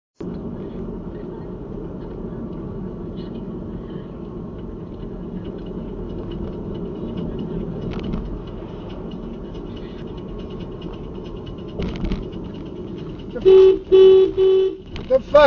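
A car engine hums and tyres roll steadily on the road, heard from inside the car.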